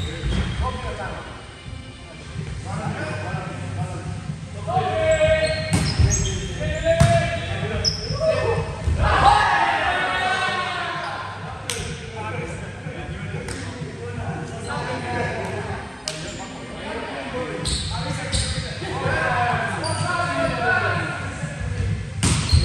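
Young men shout and call out to one another in a large echoing hall.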